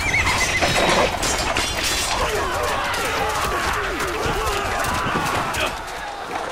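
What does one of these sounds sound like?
A crowd of men shout and yell in battle.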